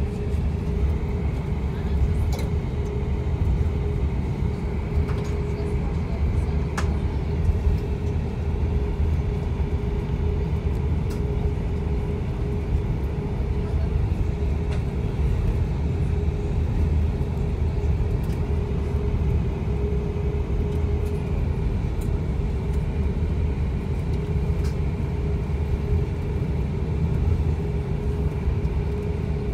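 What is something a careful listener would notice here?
An airliner rumbles and rattles as it rolls along a runway.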